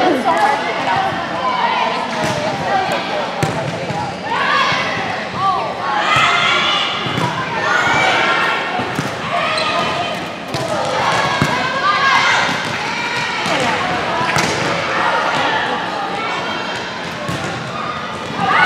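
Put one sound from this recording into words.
Young girls shout and cheer in a large echoing hall.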